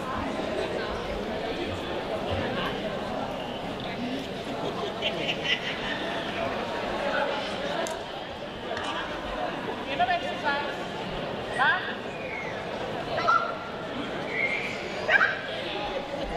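A woman calls short commands to a dog.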